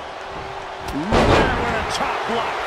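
A body slams hard onto the wrestling mat.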